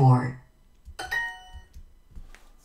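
A bright electronic chime rings once.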